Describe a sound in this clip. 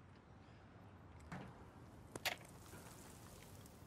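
Footsteps clank on a ladder.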